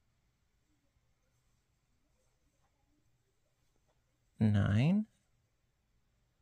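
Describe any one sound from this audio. A crochet hook rubs softly against yarn.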